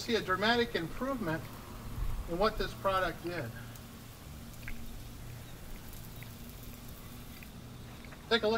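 A garden hose sprays water against a wall.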